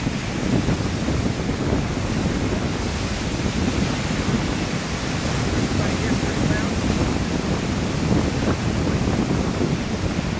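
Wind blows hard into the microphone outdoors.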